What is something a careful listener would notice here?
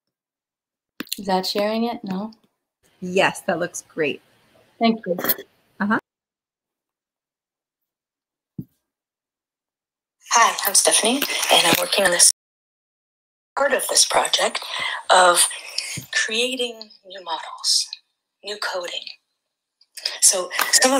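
A woman speaks calmly over an online call.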